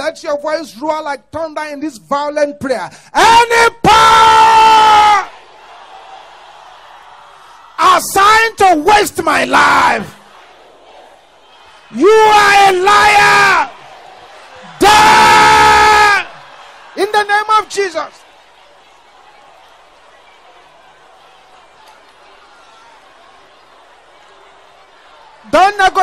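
A man preaches loudly and with fervour into a microphone.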